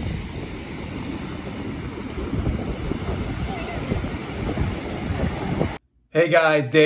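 Surf rolls and crashes onto the shore.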